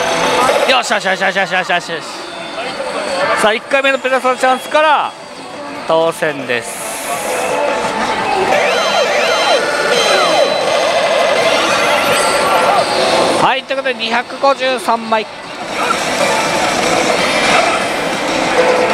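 A slot machine plays loud electronic music and jingles.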